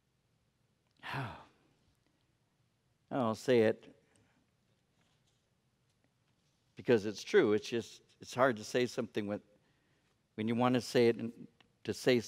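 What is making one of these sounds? An older man speaks calmly into a headset microphone, with pauses.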